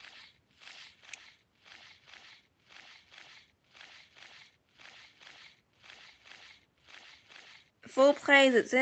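Large wings flap in a steady, quick rhythm.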